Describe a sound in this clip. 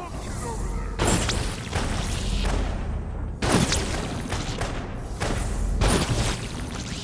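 Heavy booming explosions hit with a deep rumble.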